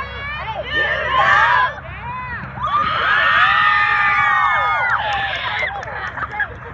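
A group of girls cheers and shouts together.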